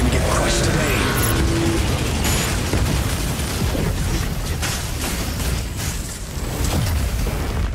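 Rapid laser weapons fire in a game.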